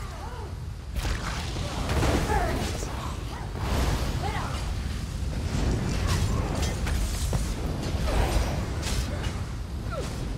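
Weapons clash and strike in quick blows.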